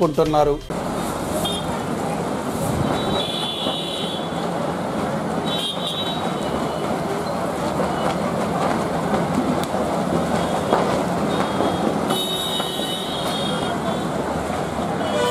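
A torn banner flaps and rattles loudly in the wind.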